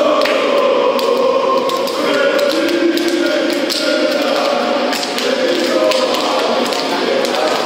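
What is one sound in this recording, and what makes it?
Hands slap together in quick high fives.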